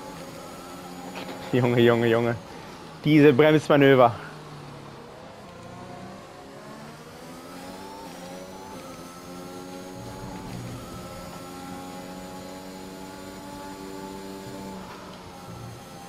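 A racing car engine roars at high revs, rising and dropping in pitch as it shifts through gears.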